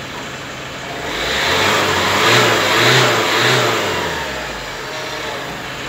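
A car's wheels spin on test rollers with a loud whir that rises and then dies away.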